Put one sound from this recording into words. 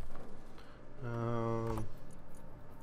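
A short electronic tone sounds as a control panel opens.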